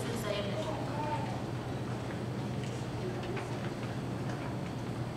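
A large choir of young voices sings in a large echoing hall.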